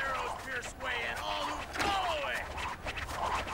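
A man shouts a command loudly.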